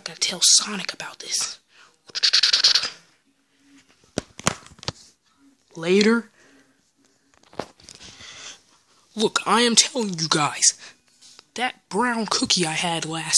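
Hands rustle and squeeze soft plush toys up close.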